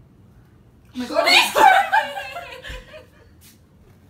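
A young woman laughs and shrieks loudly.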